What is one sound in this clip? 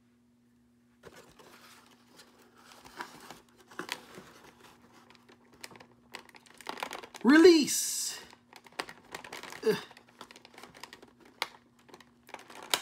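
Stiff plastic packaging crinkles and rustles as hands handle it.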